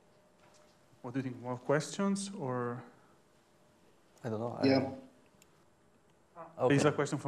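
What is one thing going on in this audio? A young man speaks calmly in a room that echoes slightly.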